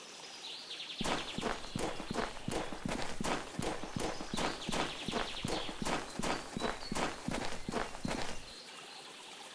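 Footsteps tramp steadily through grass.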